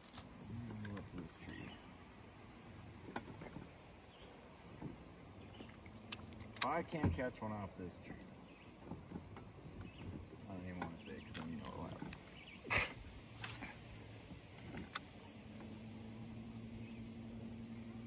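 A fishing reel clicks and whirs as a line is cast and reeled in.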